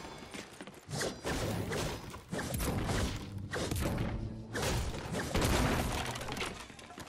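A pickaxe strikes wood in sharp repeated knocks.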